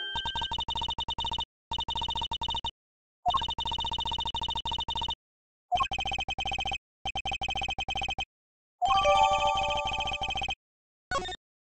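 Quick electronic blips chatter in rapid bursts.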